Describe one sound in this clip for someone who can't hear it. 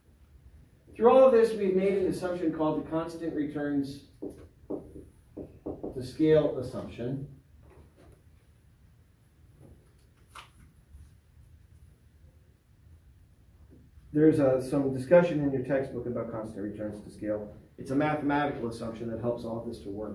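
A man speaks calmly and clearly, as if lecturing.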